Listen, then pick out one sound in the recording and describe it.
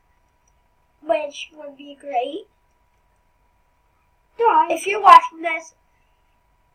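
A young boy talks into a headset microphone, casually and close up.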